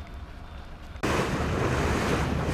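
Water sprays and rushes from a fireboat's cannon.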